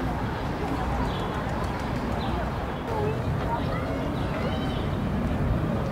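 Young birds chirp faintly.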